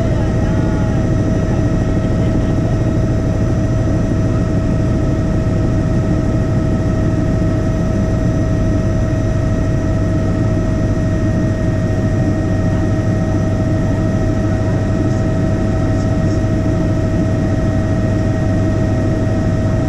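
A helicopter's engine and rotor drone loudly and steadily inside the cabin.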